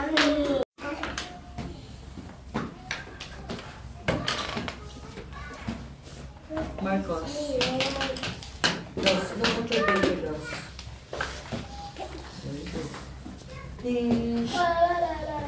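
Young children chatter nearby.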